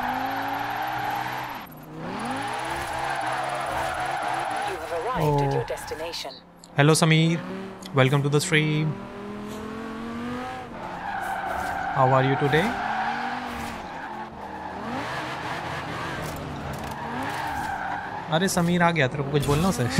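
A car engine revs high and roars.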